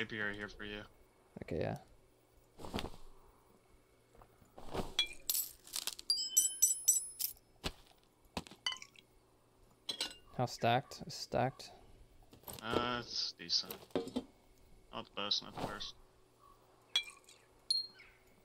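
Short soft clicks sound as items are moved around.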